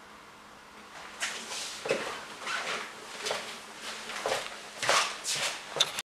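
Footsteps shuffle across the floor.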